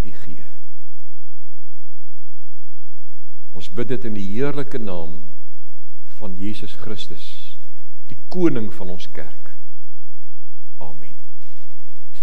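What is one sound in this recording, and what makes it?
A middle-aged man speaks slowly in halting phrases through a microphone.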